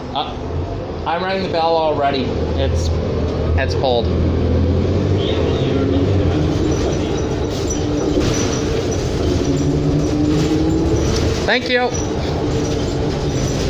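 A bus rattles and creaks as it moves.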